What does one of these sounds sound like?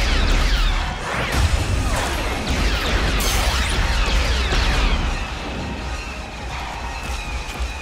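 Laser blasters fire in rapid bursts of descending zaps.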